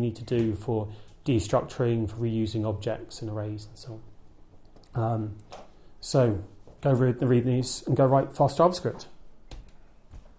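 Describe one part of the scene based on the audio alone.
A man speaks calmly to an audience.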